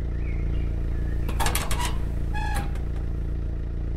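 A metal door opens.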